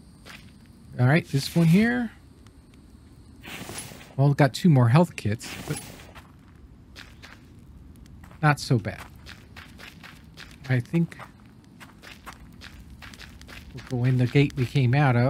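An older man talks casually into a close microphone.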